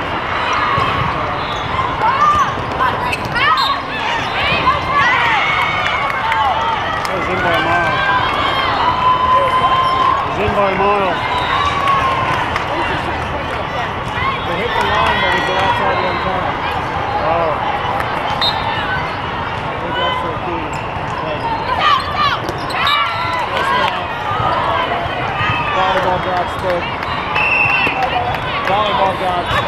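A large crowd chatters and cheers, echoing through a vast hall.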